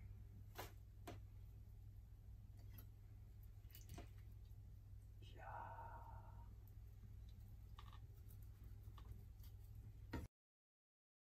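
A knife scrapes and taps on a wooden cutting board.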